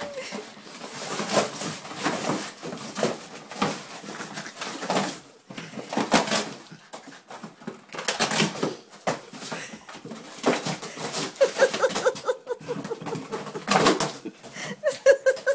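Cardboard scrapes and rustles as a dog pushes a box across the floor.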